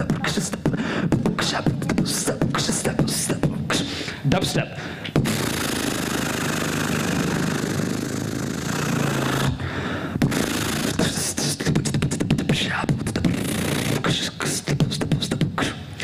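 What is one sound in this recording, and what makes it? A keyboard plays along with the singing.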